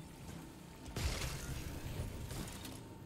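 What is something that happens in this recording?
Gunfire bursts from a game weapon.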